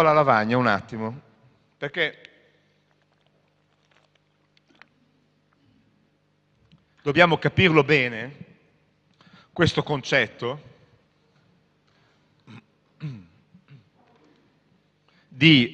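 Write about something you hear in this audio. A middle-aged man speaks with animation through a microphone, in a hall that echoes a little.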